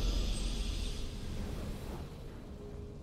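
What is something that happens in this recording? A triumphant game fanfare sounds briefly.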